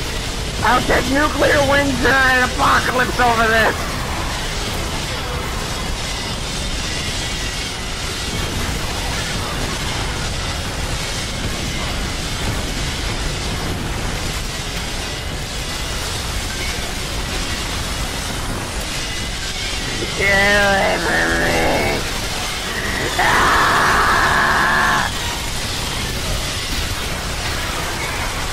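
Rapid gunfire rattles on and on.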